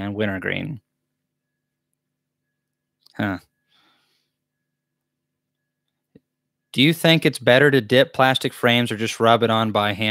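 A young man speaks calmly and close into a microphone, pausing between phrases.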